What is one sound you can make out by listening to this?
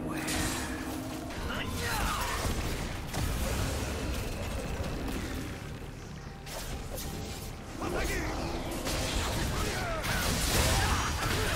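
Spell effects whoosh and crackle in a fantasy battle game.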